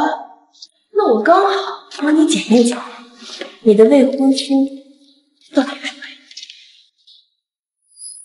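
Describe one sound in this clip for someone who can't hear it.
A second young woman answers with a light, playful tone.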